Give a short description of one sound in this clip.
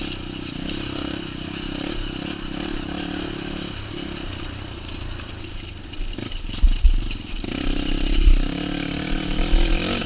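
Tyres rumble over a bumpy dirt road.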